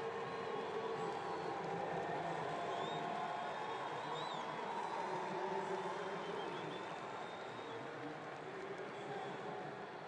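Spectators whistle and call out in a large crowd.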